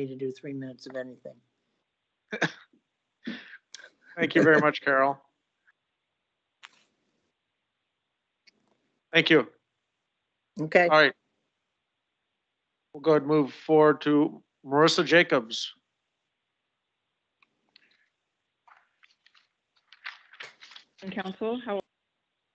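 A man speaks calmly through a microphone in a room with a slight echo, pausing often.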